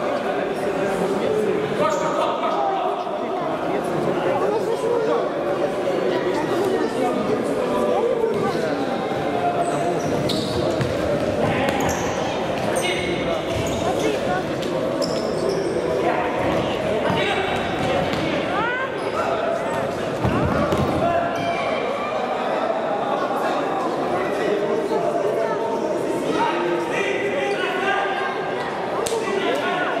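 Players' shoes squeak on a wooden floor.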